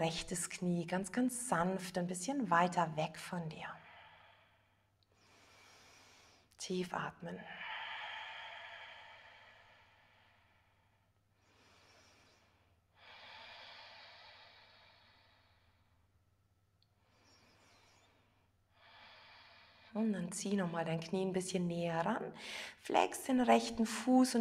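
A woman speaks calmly and softly, close to a microphone.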